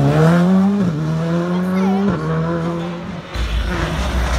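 A rally car engine revs hard and pulls away into the distance.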